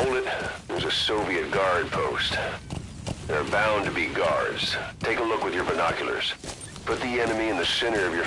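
A horse gallops on a dirt track, its hooves thudding.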